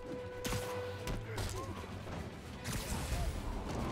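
Punches and thuds land in a fight.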